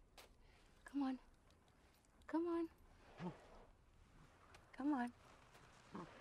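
A woman speaks softly and hesitantly, close by.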